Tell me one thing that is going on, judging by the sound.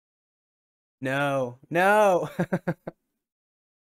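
A man laughs loudly.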